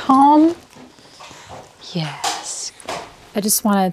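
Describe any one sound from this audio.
A young woman talks softly up close.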